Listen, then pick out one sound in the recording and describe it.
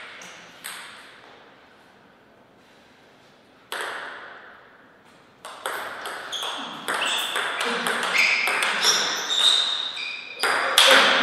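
A table tennis ball bounces sharply on a table.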